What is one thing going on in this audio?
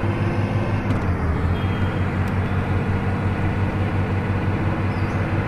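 A bus engine hums steadily as the bus drives along.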